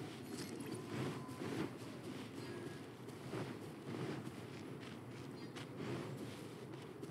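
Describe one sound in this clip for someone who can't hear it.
Quick footsteps rustle through grass.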